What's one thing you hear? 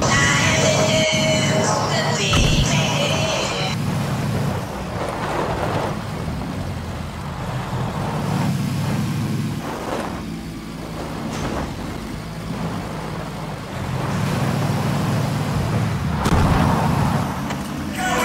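Tyres crunch over dirt and grass.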